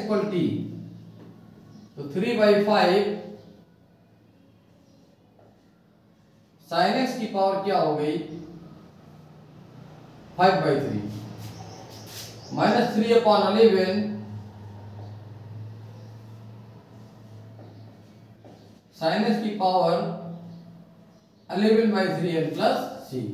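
A man speaks calmly in short phrases, explaining as if lecturing.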